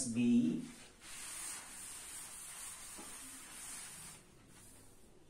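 A cloth duster rubs across a chalkboard.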